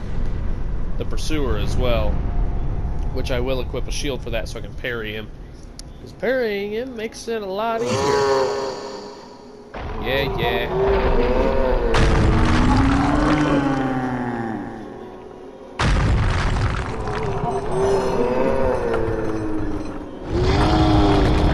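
A huge creature roars deeply and growls.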